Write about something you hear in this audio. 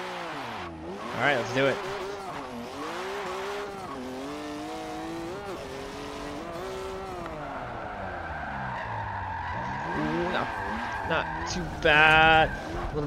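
A car engine revs hard, rising and falling as it shifts gears.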